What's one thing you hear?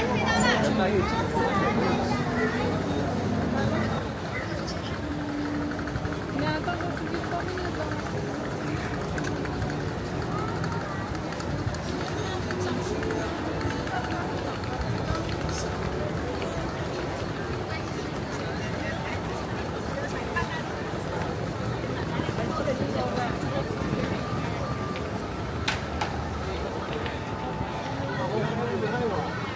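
A crowd of people chatters and bustles all around outdoors.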